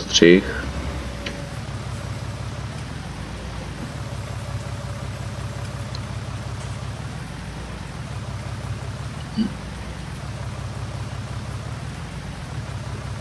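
A tractor engine chugs steadily, rising and falling as it moves.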